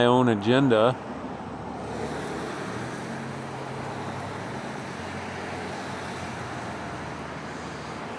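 Water in a river rushes steadily.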